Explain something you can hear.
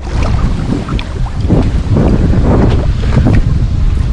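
A fishing reel whirs and clicks as its handle is cranked.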